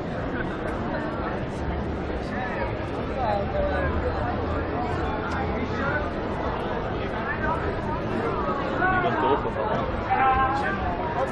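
A crowd of people chatter nearby outdoors.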